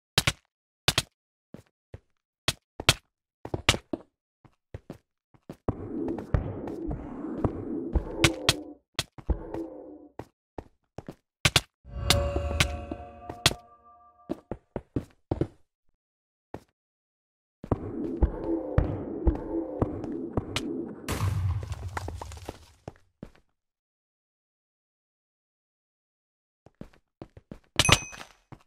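Sharp clicks and thuds sound as stone blocks are struck and broken in a game.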